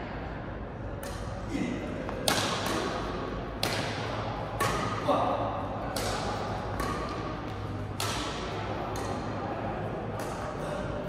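Badminton rackets strike a shuttlecock with sharp pops in an echoing hall.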